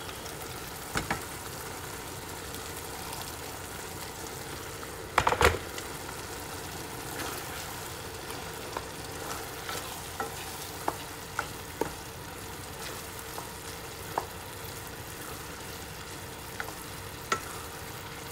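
A wooden spoon knocks and scrapes against a pan.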